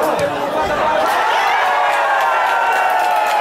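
A crowd cheers loudly as the play ends.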